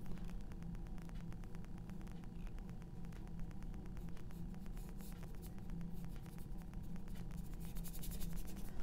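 A paintbrush dabs and scratches softly on canvas.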